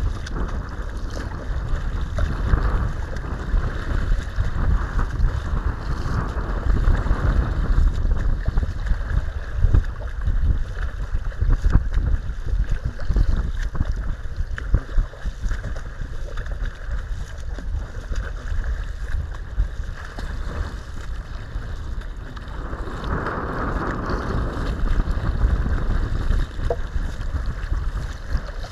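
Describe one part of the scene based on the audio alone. Choppy water laps and splashes against a kayak hull.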